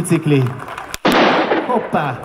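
A gun fires a single loud shot outdoors.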